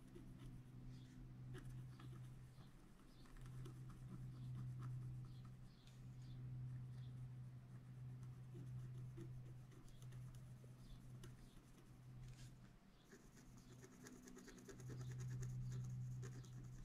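A wooden stylus scratches lightly on paper in short strokes.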